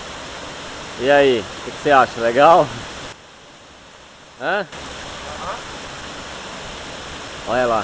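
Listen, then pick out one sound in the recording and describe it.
A young man calls out loudly close by.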